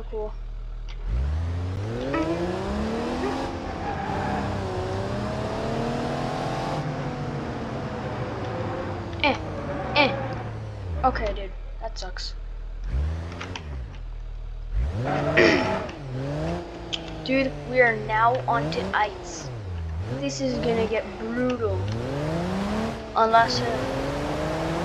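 An engine revs up and down as an off-road vehicle drives.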